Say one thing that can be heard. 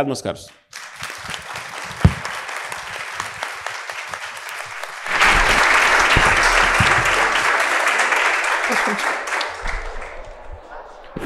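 An audience applauds loudly in an echoing hall.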